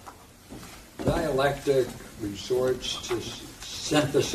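An elderly man reads aloud calmly.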